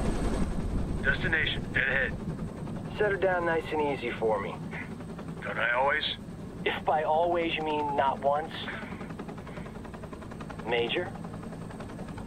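A man speaks tensely over a headset radio.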